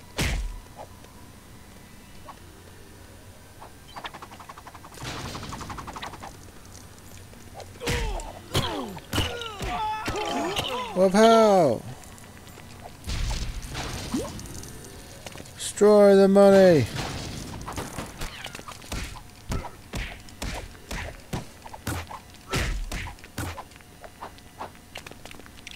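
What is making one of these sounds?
Cartoonish game sound effects clatter and pop as toy figures fight.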